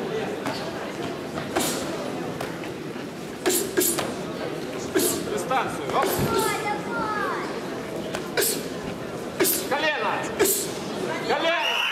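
Fighters' blows thud sharply against each other.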